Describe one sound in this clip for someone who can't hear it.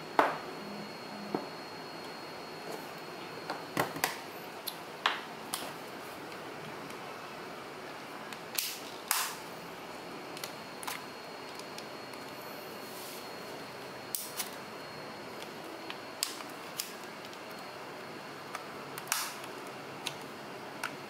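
Plastic parts click and clack as a game controller is taken apart by hand.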